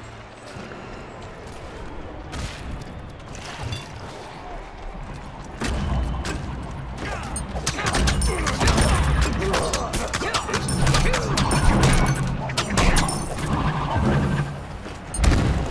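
Game spell blasts and magical whooshes burst out during a fight.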